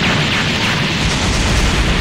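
A burst of flame roars upward.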